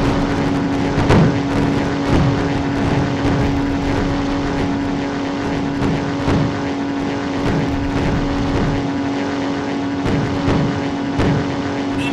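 A propeller aircraft engine drones steadily at full power.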